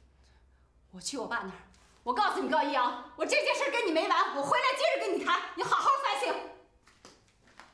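A woman speaks with animation and rising agitation, close by.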